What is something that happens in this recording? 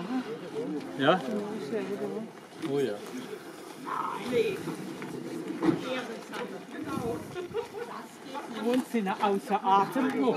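Men and women talk with one another nearby outdoors.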